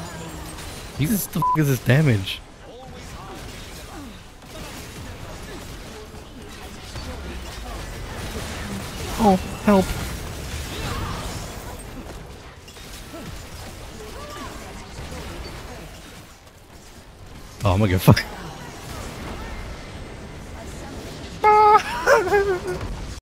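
Game spell effects whoosh and clash during a fight.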